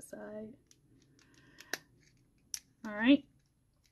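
A small metal compact snaps shut with a click.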